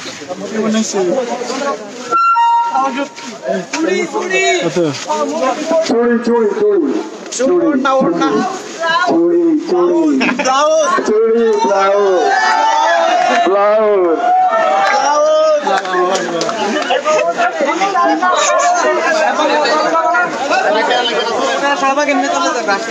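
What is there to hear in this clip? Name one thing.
A crowd of young men chants and shouts loudly outdoors.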